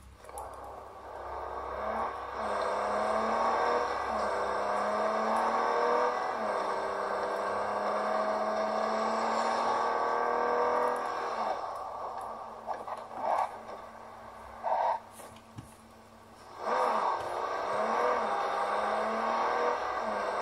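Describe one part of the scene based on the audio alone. A car engine hums and revs through small speakers.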